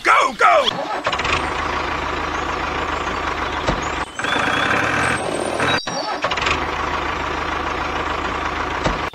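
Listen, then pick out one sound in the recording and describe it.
A small tractor engine rumbles steadily.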